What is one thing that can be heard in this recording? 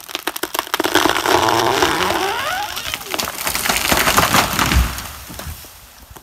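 Branches rustle and swish as a tree falls.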